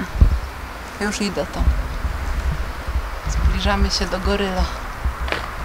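A woman speaks calmly from a short distance.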